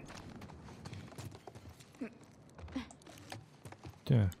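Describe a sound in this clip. Soft footsteps creak slowly across a wooden floor.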